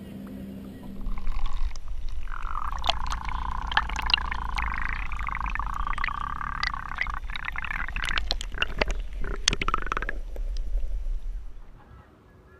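Water splashes and sloshes as a fish swims off.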